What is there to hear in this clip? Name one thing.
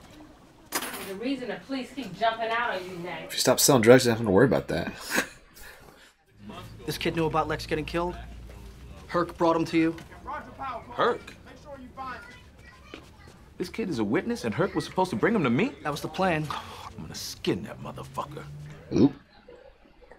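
Men speak tensely in a dramatic exchange.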